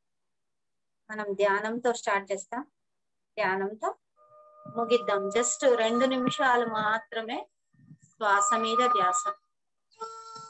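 A middle-aged woman speaks with animation through an online call.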